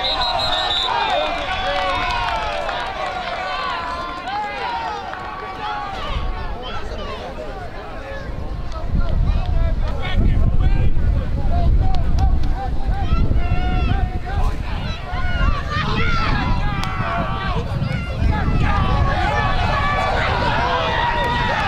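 Young men and boys shout and call out across an outdoor field.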